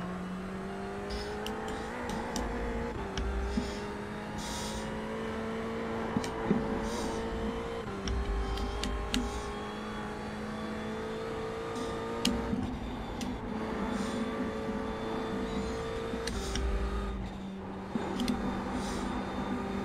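A racing car engine roars steadily, its pitch rising and dropping as it shifts through the gears.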